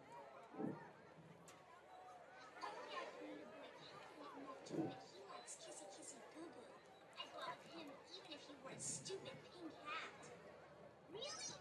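A crowd of young people talks and calls out outdoors, heard from a distance.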